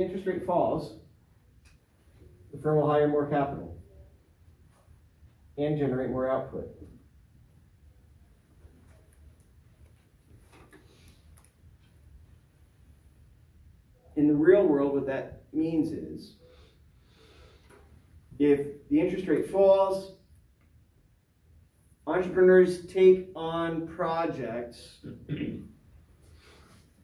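A man speaks calmly in short phrases, close by and slightly muffled.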